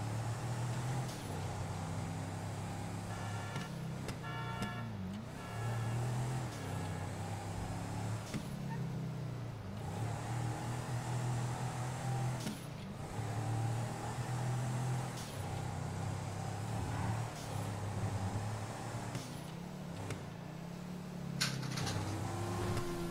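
A car engine hums steadily and rises and falls as the car speeds up and slows down.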